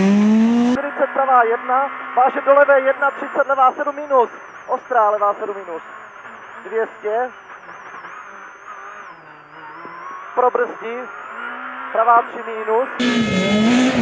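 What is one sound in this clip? A rally car engine roars and revs hard from inside the cabin.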